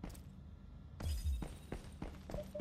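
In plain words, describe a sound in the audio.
A shotgun fires with a deep boom.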